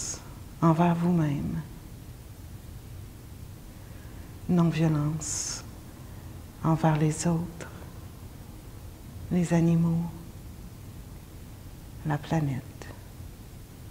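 A woman speaks softly and calmly in short, slow phrases with long pauses.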